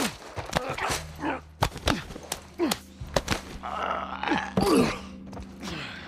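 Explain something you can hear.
Feet scuffle and bodies thump in a close struggle.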